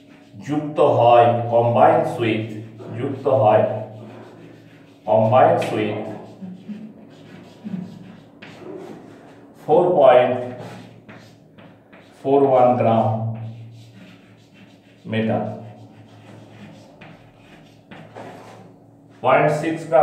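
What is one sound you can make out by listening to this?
A middle-aged man speaks calmly and clearly nearby, explaining in pauses.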